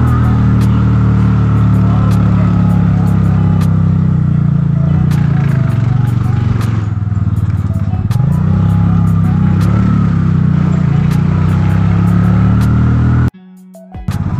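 A motor engine drones steadily.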